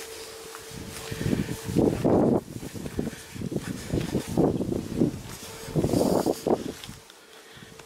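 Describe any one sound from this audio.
Dry brush rustles and crackles close by.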